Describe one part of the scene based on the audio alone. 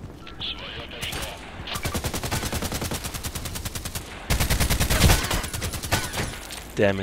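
A rifle fires rapid automatic bursts close by.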